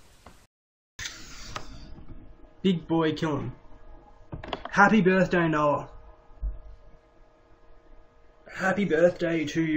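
A young man talks with animation through a webcam microphone, close up.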